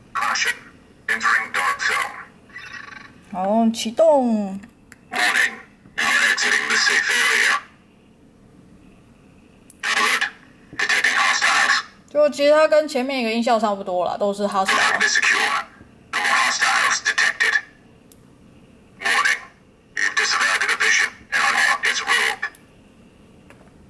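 A small electronic prop device plays short bursts of sound effects.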